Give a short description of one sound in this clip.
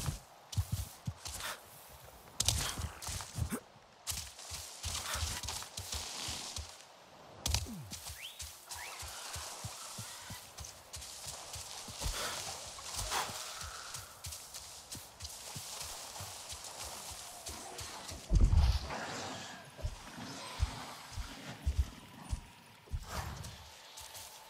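Footsteps rustle through dense leafy plants.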